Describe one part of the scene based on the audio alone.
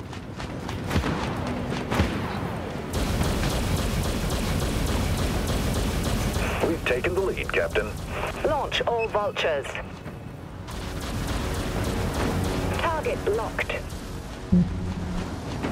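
Heavy cannons boom now and then.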